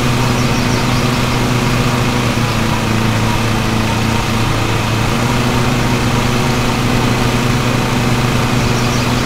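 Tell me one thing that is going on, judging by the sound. A riding mower's engine drones steadily.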